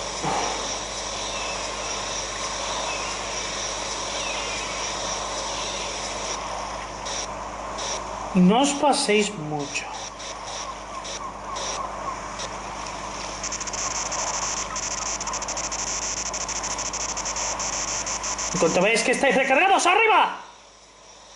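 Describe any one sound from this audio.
A jetpack roars with a steady rushing hiss through a small loudspeaker.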